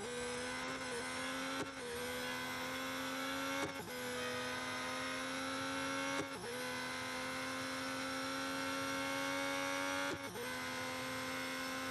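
A racing car engine roars steadily at high revs, dipping briefly with each gear change.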